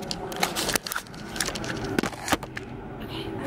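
A bag rustles and bumps as it is handled close by.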